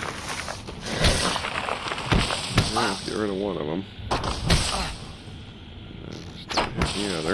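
A sword strikes and clangs in a fight.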